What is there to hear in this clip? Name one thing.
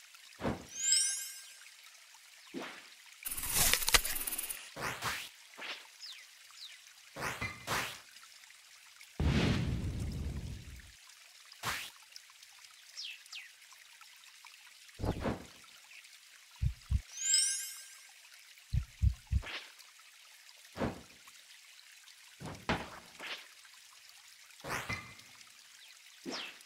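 Game sound effects whoosh, chime and thud as cards are played.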